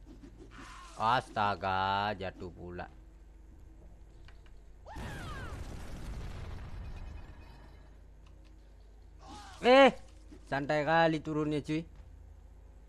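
A game fighter shouts with effort.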